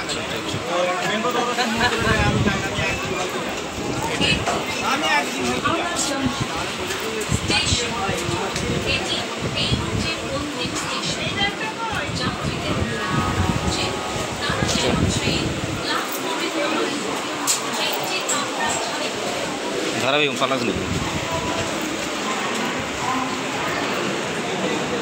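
A crowd of men and women chatter loudly nearby.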